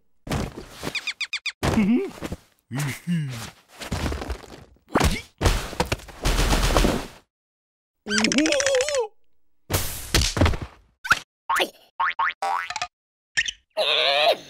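A cartoon creature squeaks and babbles in a high silly voice.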